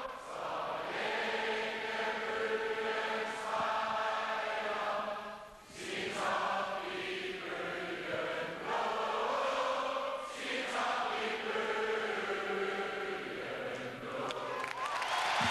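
A large crowd sings an anthem together in a big echoing hall.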